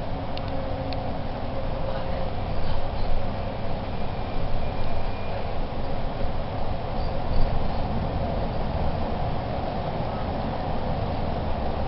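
Traffic roars and echoes through a tunnel.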